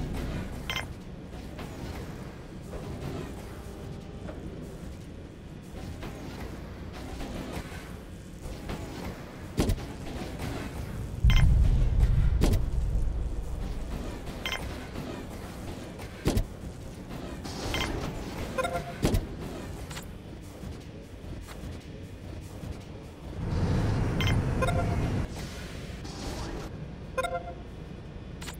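Soft game menu clicks and chimes sound now and then.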